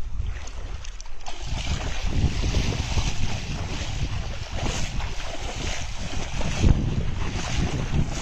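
Water splashes as people wade through shallow water.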